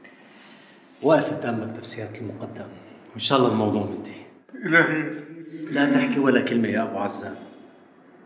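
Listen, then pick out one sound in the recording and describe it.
A man greets another man warmly, talking with animation close by.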